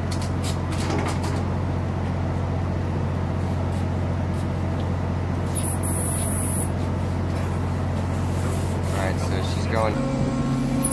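A ship's engine hums low and steady.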